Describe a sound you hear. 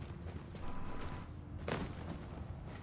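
A body thuds while climbing over a low wall.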